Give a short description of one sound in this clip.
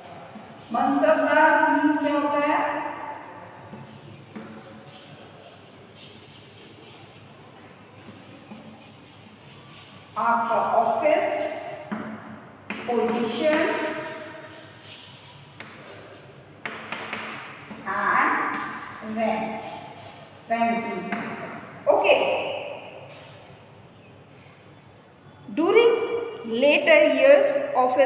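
A young woman speaks calmly and clearly, close by, pausing between phrases.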